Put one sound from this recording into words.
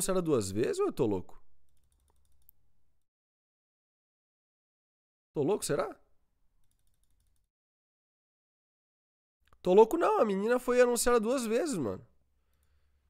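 A young man talks with animation into a close microphone, in short bursts with pauses.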